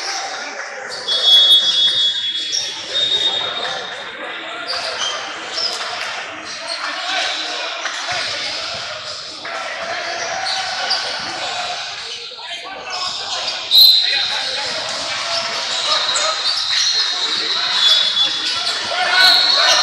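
A crowd of spectators murmurs in the background.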